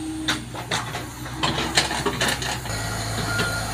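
Metal tracks of an excavator clank and squeak as it moves over soil.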